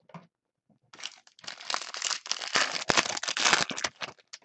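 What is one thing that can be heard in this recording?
A foil wrapper crinkles and tears open close by.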